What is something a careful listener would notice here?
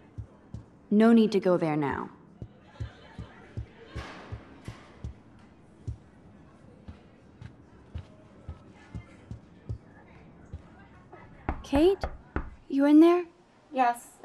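A young woman speaks calmly, close by.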